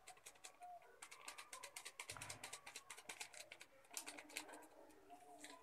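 Spice powder rustles as it is shaken from a paper packet.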